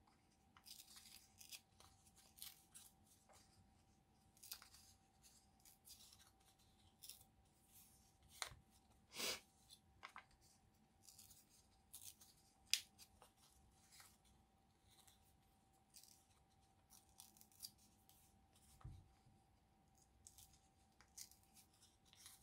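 Paper crinkles and rustles close by as it is folded.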